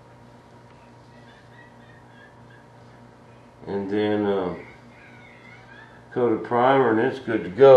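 A hand rubs and presses across a smooth plastic surface.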